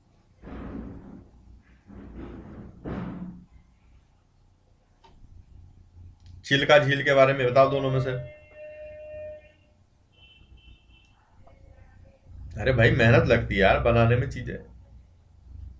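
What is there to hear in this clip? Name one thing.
A man speaks calmly into a close microphone, in bursts with pauses.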